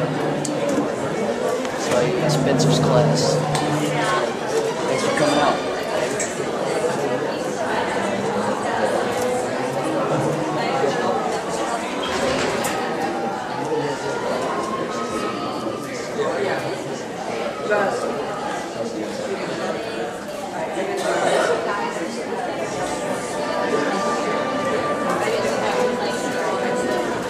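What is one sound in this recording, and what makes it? An audience murmurs and chatters in a large hall.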